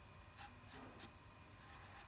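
A marker squeaks as it writes on plastic.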